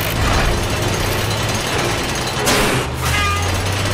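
A metal claw scrapes and clanks through a pile of metal scrap.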